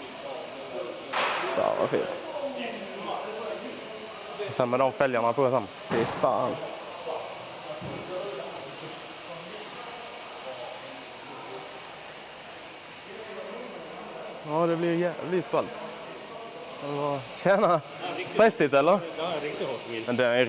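A man speaks with animation close by, in a large echoing hall.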